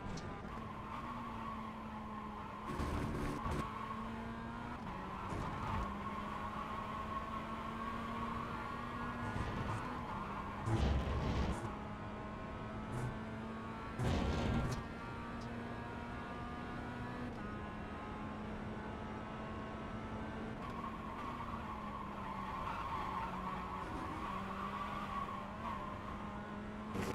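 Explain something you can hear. A racing car engine roars steadily, its pitch rising and dropping with gear changes.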